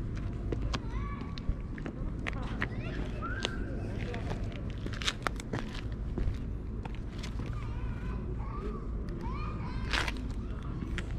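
A cat meows close by.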